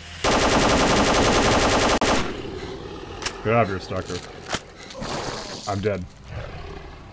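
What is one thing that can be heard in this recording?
A creature growls and snarls.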